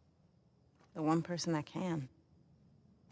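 A young woman answers quietly and sadly, close by.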